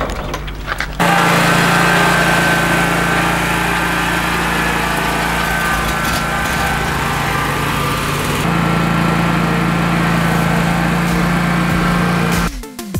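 A lawn mower engine runs with a steady drone.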